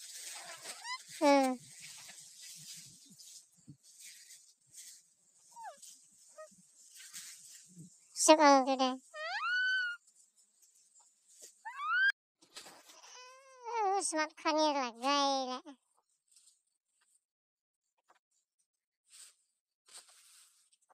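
Dry grass rustles and crackles as it is handled.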